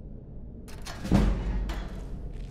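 A lock snaps open with a heavy clunk.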